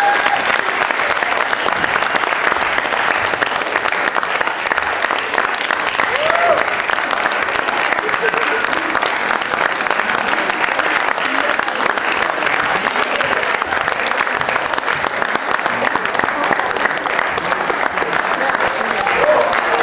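An audience applauds loudly and steadily in a hall.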